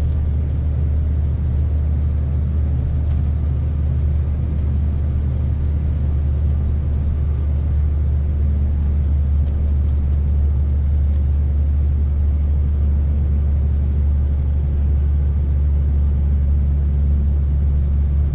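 A truck's diesel engine rumbles steadily inside the cab.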